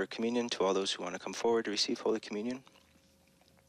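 A man speaks slowly into a microphone, echoing in a large hall.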